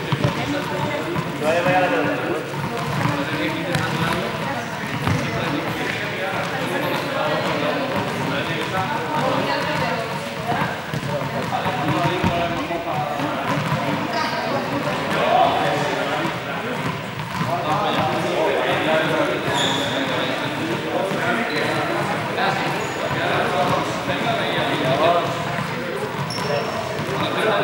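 Young men and women chat and call out in a large echoing hall.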